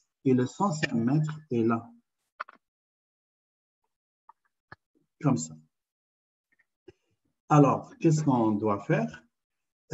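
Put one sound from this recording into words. A man explains calmly, heard through an online call.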